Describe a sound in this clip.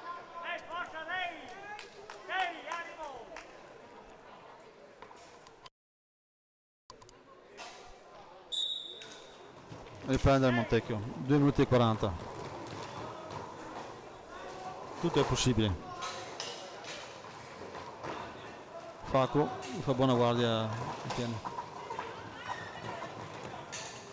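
Roller skate wheels roll and scrape on a hard floor in a large echoing hall.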